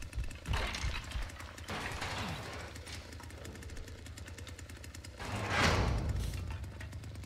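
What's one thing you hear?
A heavy metal door creaks open.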